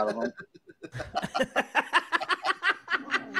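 A man laughs heartily over an online call.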